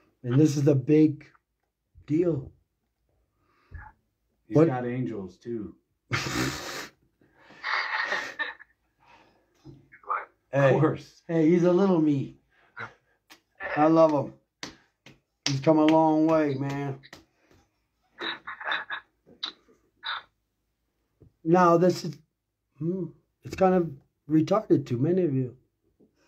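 A man talks with animation close to a phone microphone.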